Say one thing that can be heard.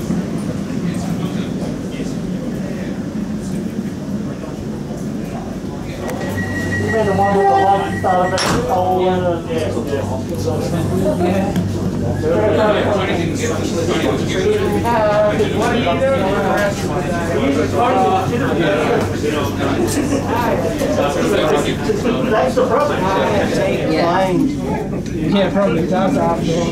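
A train rumbles and hums steadily while moving.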